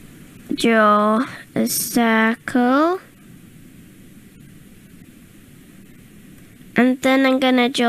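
A man speaks in drawn-out tones into a microphone.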